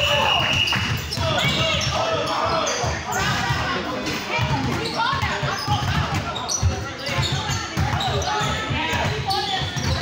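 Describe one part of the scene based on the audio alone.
Young voices shout and chatter in a large echoing hall.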